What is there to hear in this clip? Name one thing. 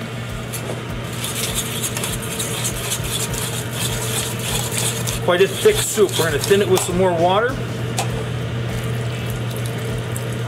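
A whisk scrapes and clicks quickly against a metal pot.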